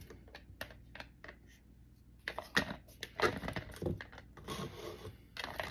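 Plastic crinkles and rattles as a container is handled.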